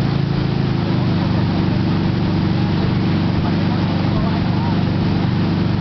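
A boat engine drones steadily close by.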